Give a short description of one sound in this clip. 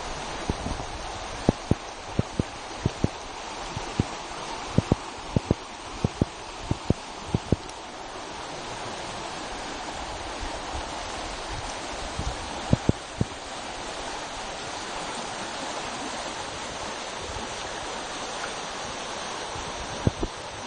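A fast-flowing river rushes over rocks.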